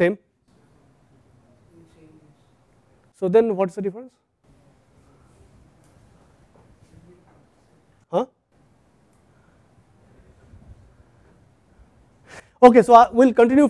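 A man speaks through a clip-on microphone in short bursts, with pauses between.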